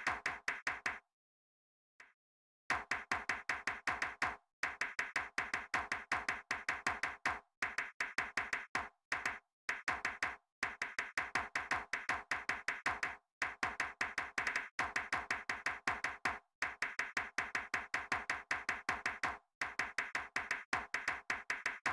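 Quick game hit sounds tap out a fast, steady rhythm, with a few short pauses.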